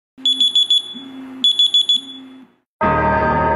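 A phone alarm beeps in quick bursts.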